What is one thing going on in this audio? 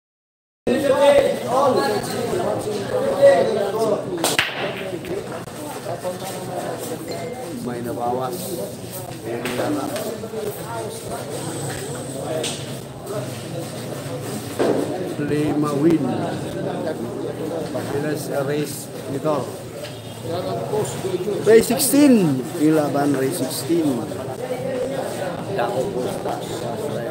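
A crowd of young men chatters nearby.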